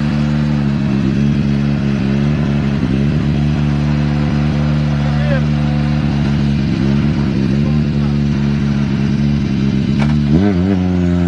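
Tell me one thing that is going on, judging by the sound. A car engine idles with a loud, deep rumble.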